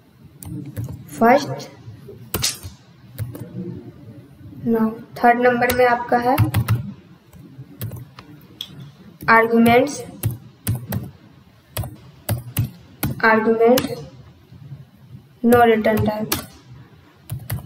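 A young woman speaks calmly into a nearby microphone, in short phrases with pauses.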